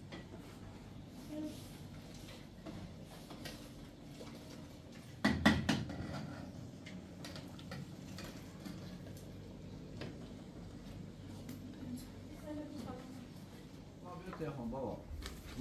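Metal pots clank and scrape on a stove.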